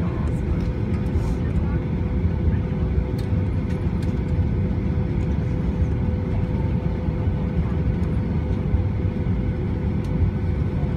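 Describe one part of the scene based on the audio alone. Aircraft wheels thump and rumble over the runway.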